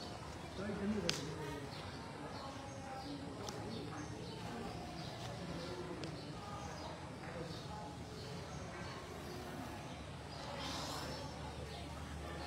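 Sandals scuff on concrete as a person walks.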